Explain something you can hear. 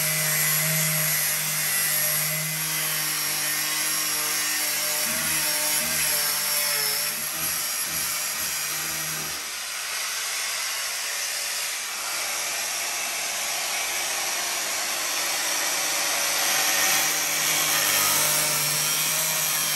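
An angle grinder whines loudly against metal.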